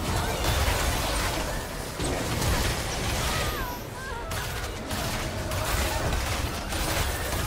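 Magic spells crackle and burst amid clashing blows in a fast fight.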